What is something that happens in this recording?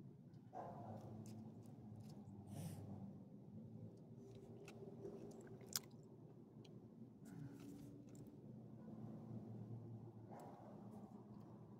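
A dog sniffs at the ground.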